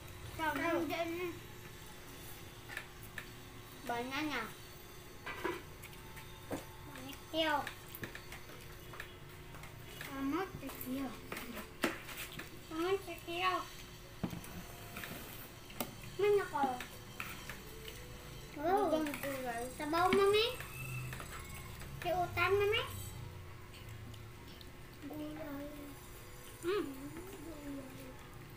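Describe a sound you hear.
A young girl talks close by with animation.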